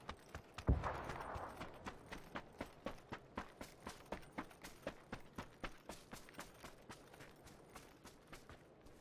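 Footsteps run steadily over dry ground and grass.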